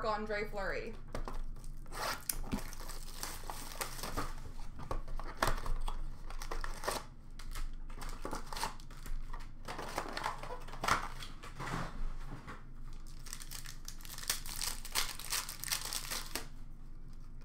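Foil packs and cards rustle and crinkle as hands handle them.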